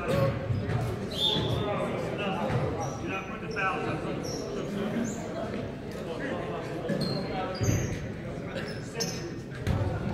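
Sneakers squeak on a hardwood court.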